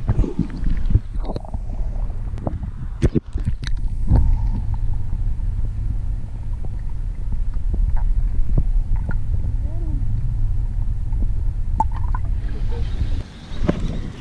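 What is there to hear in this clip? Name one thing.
Water rumbles and gurgles, heard muffled from underwater.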